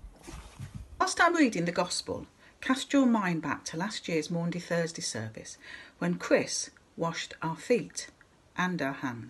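An older woman talks closely into a microphone, as on an online call.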